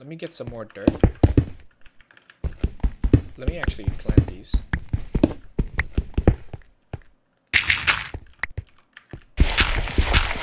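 Stone blocks crack and crumble as they are broken apart.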